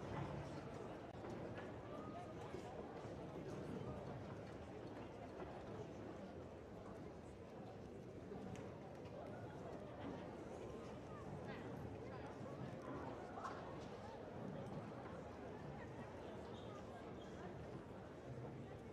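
A crowd of young people chatters and murmurs in a large echoing hall.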